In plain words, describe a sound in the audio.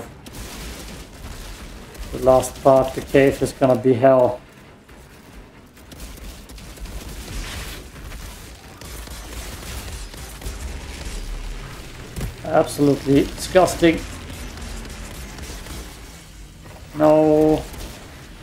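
Gunfire and blasts crackle from a video game.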